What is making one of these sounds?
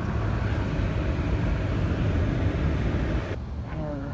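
Rain patters on a car windscreen.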